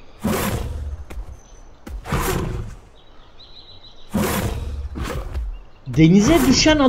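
A creature rustles through grass in bursts.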